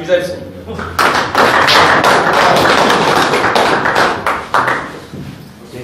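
A small group of men clap their hands.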